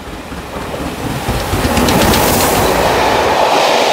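A steam locomotive chuffs loudly as it passes close by.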